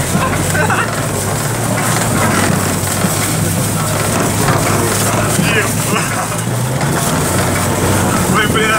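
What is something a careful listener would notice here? Young men shout and whoop with excitement close by.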